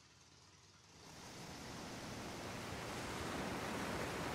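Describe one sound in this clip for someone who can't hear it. A motorboat's engine hums steadily as it speeds over water.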